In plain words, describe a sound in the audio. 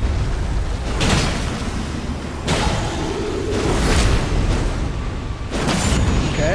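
Heavy weapon blows crash and clang in bursts.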